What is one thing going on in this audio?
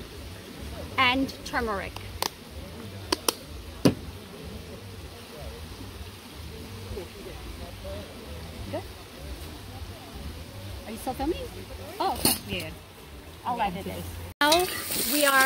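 Women talk with each other nearby outdoors.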